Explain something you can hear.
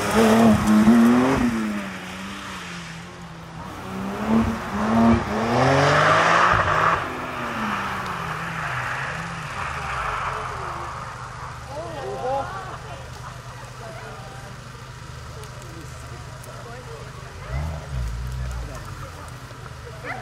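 A rally car engine roars and revs hard as it races past.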